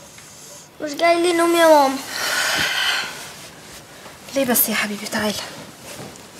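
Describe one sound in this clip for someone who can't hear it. A young woman speaks softly and with emotion, close by.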